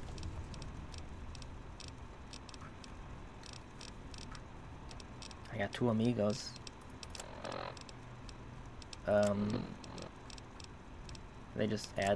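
Soft electronic clicks tick rapidly, one after another.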